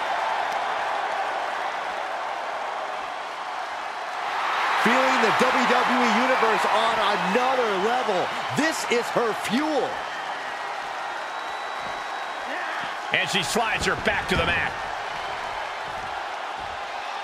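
A large crowd cheers and roars in a big echoing arena, swelling louder for a while.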